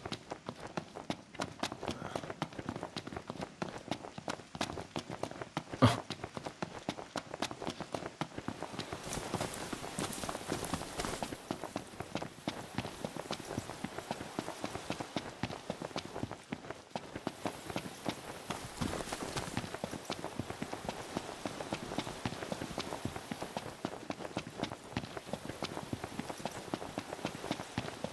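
Quick footsteps run on hard ground, then on a dirt path.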